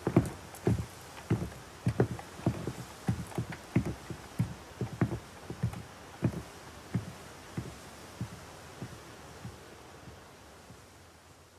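Heavy blows thud again and again, slowly spacing out and fading.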